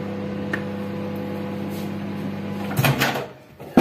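A low electric hum drones steadily, then stops.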